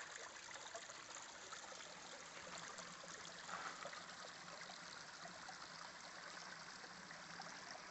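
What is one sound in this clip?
Water trickles and babbles gently over rocks.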